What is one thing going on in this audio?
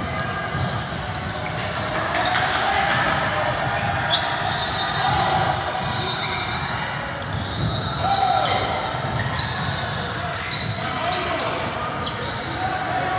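Sneakers squeak sharply on a gym floor, echoing.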